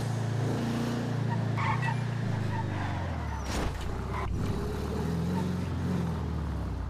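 A car engine hums steadily at low revs.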